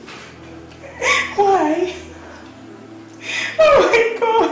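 A woman wails and sobs close by.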